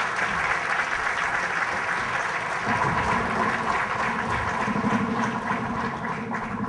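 A large audience murmurs softly in an echoing hall.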